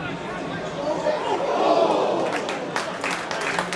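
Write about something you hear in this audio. A crowd roars loudly and briefly.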